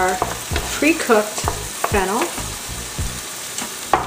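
Chunks of vegetable tumble into a pan.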